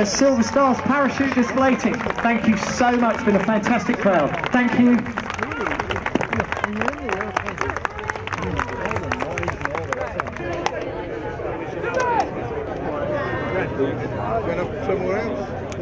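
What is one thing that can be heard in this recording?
A crowd murmurs and chatters outdoors.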